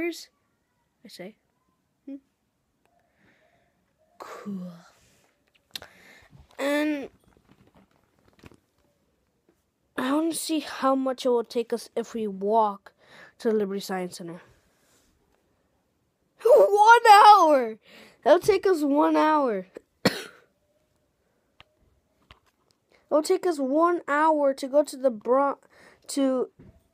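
A boy talks with animation, close to a phone microphone.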